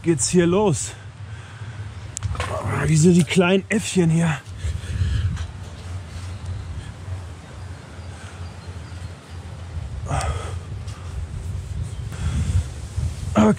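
Shoes and hands knock on a metal ladder.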